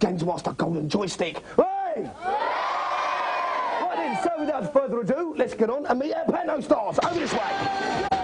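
A young man speaks loudly and animatedly into a microphone.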